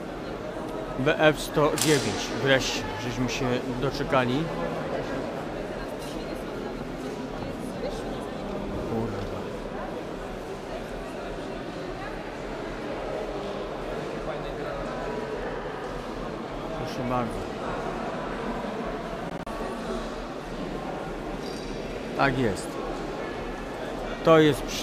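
Voices of children and adults chatter nearby in a large echoing hall.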